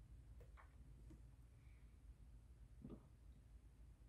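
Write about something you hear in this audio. A man murmurs briefly and quietly, close by.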